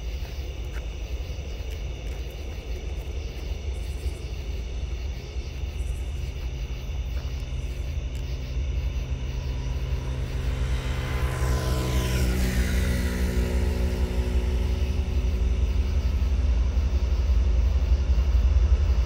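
A train horn blares in long steady blasts.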